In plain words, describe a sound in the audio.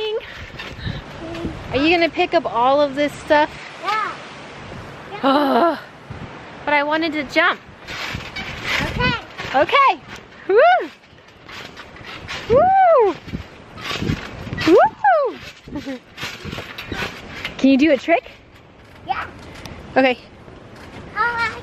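Bare feet thump softly on a trampoline.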